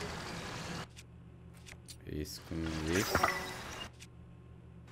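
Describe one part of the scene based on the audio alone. Short soft clicks sound as game menu items are selected.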